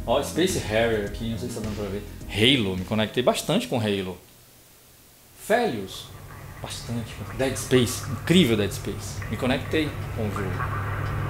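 A middle-aged man talks with animation close to a microphone.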